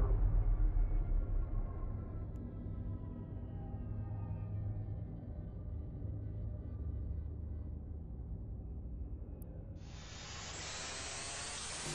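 An engine hums with a deep, steady rumble.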